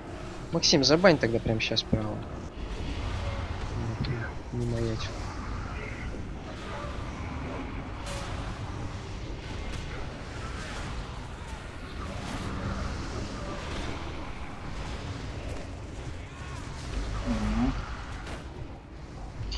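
Spells and weapon strikes crackle and whoosh in a fantasy battle.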